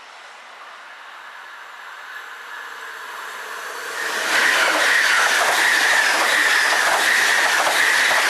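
A high-speed train approaches and rushes past close by with a loud roar.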